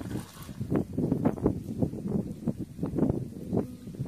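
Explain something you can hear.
Hands scoop and squelch in wet mud.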